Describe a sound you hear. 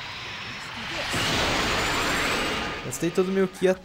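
A powerful energy blast roars with a loud rushing whoosh.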